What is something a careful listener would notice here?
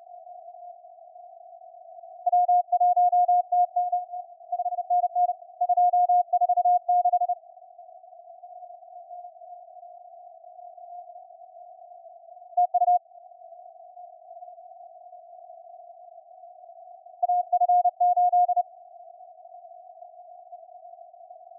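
Radio static hisses softly and steadily.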